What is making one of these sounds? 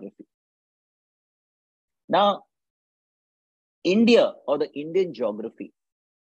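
An elderly man speaks calmly over an online call, with pauses.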